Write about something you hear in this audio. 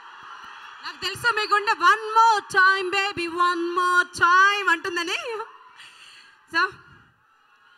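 A woman speaks with animation through a microphone in a large echoing hall.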